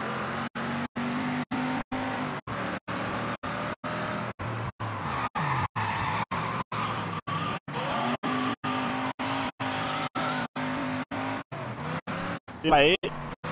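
A car engine hums and revs steadily.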